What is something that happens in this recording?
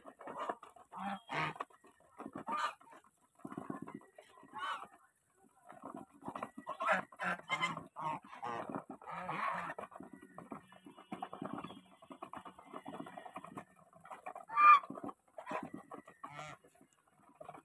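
Geese honk and call nearby.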